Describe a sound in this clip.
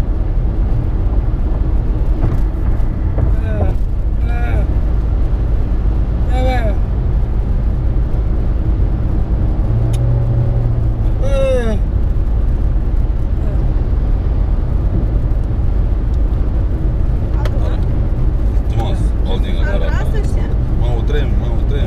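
Tyres and engine rumble steadily from inside a moving car on a highway.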